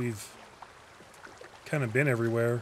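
Water splashes as someone swims.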